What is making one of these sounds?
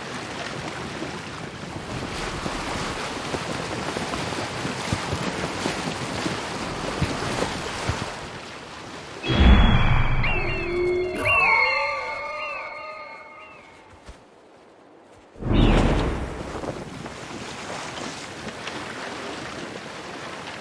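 Water rushes and splashes against a sailing boat's hull.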